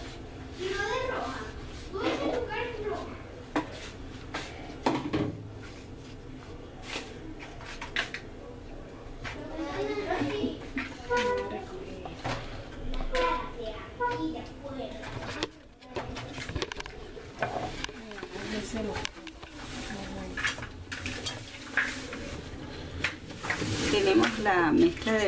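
Plastic containers clatter and knock as they are handled.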